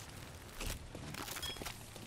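Flames crackle.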